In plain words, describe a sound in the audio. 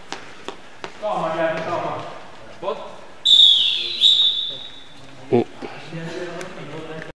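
Men shout to each other across an echoing hall.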